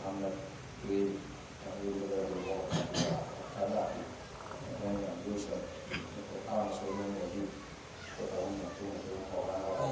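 A man recites prayers in a steady chanting voice nearby.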